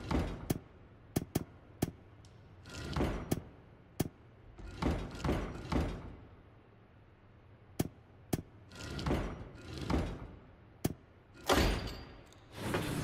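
Heavy stone panels grind and clunk as they rotate.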